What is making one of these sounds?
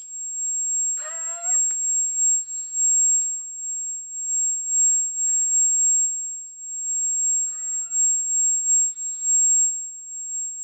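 A woman speaks briefly close by.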